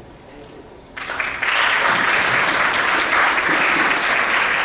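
An audience claps loudly in a large hall.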